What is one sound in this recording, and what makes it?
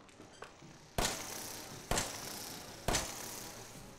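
A pistol fires several loud shots.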